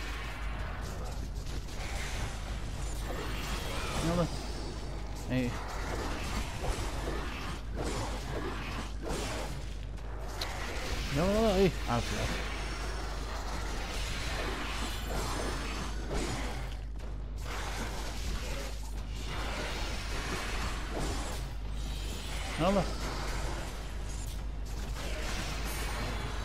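Chained blades whoosh and slash through the air.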